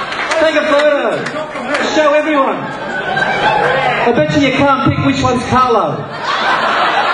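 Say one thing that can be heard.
An elderly man speaks with animation into a microphone, heard over loudspeakers in a large echoing hall.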